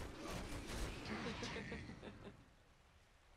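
Video game spell effects crackle and burst.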